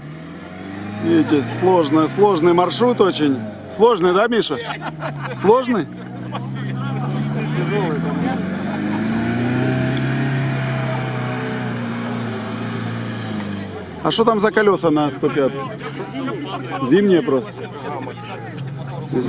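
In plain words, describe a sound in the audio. Men talk and laugh nearby, outdoors.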